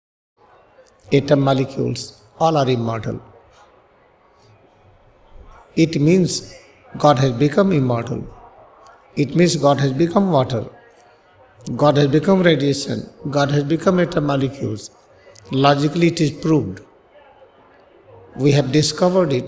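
A man speaks slowly and expressively into a microphone, with long pauses between phrases.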